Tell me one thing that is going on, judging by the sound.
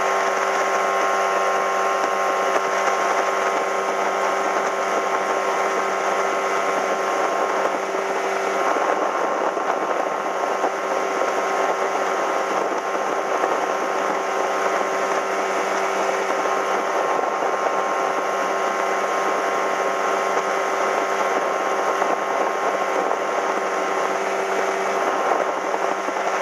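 A boat's outboard motor drones steadily at speed.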